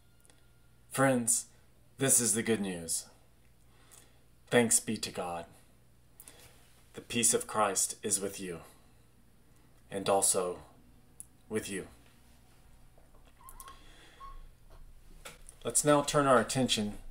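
A middle-aged man speaks calmly and clearly into a nearby microphone, with pauses.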